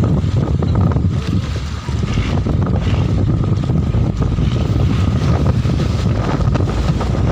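Waves slap against the hull of a boat.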